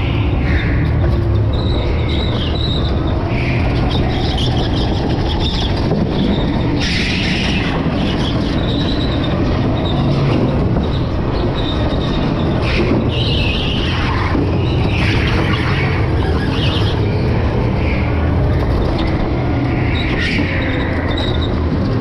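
Kart tyres squeal on a smooth floor in the turns.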